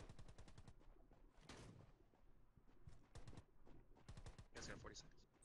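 Rapid bursts of gunfire crackle close by.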